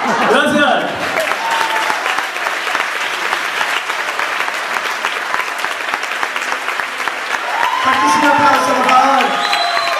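A crowd claps and cheers in a large hall.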